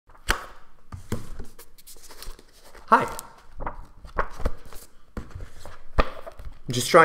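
Book pages rustle and thump as a book is handled.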